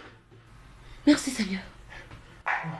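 A man cries out loudly nearby.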